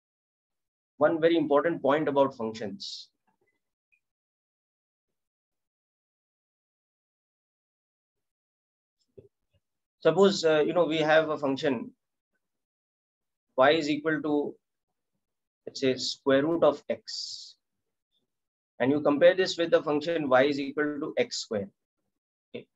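A man speaks calmly through a microphone, explaining in short bursts with pauses.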